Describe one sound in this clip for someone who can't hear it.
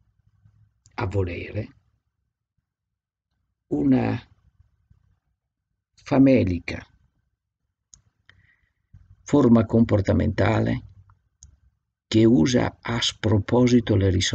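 An older man speaks calmly in short phrases over an online call.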